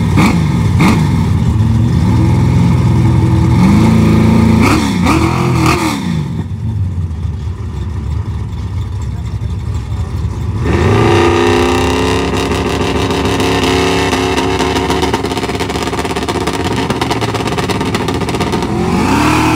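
A loud car engine idles roughly and revs in sharp bursts close by.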